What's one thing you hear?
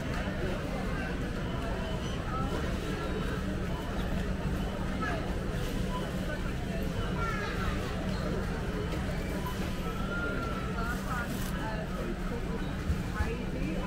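A crowd of shoppers chatters in a large echoing hall.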